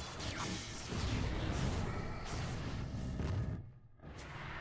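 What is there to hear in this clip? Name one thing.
Magic spells crackle and boom in a noisy fight.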